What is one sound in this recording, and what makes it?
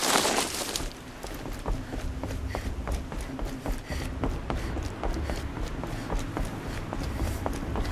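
Footsteps thud across a wooden bridge.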